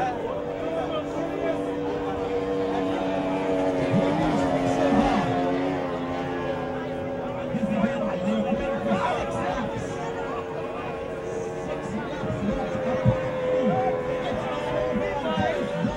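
Several racing boat engines drone across the water in the distance.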